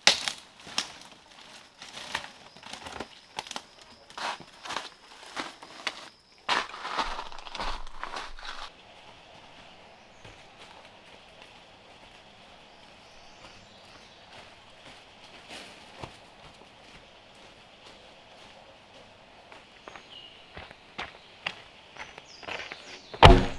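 Footsteps crunch through dry leaves and undergrowth.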